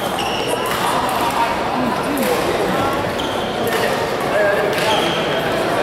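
A badminton racket smacks a shuttlecock.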